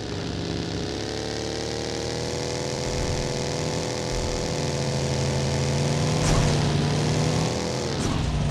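A buggy engine roars steadily as it drives over rough ground.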